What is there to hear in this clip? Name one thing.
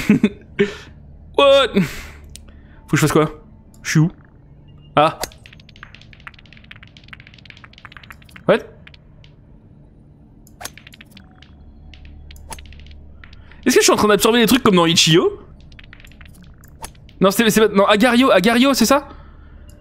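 Short electronic pops sound as balls drop and merge in a game.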